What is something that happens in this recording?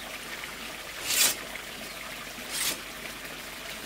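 A blade knocks against a bamboo wall.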